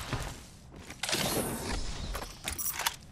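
A metal crate's lid slides open with a hiss.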